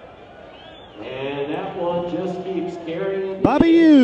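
A crowd in the stands cheers and shouts outdoors.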